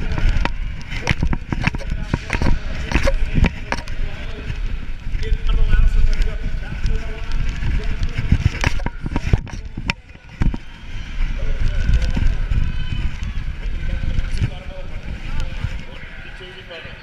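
Wind buffets a microphone as a bike rides fast.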